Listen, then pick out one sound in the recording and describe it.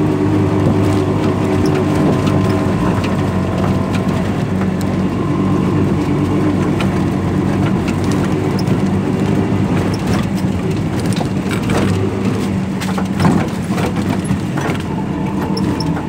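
A vehicle rattles and bumps over a rough dirt track.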